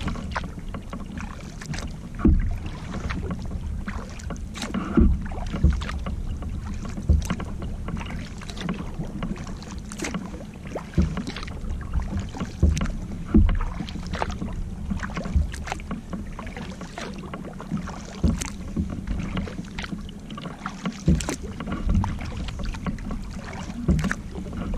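Paddle blades splash and dip into water at a steady rhythm.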